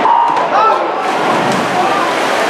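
Swimmers dive into the water with splashes.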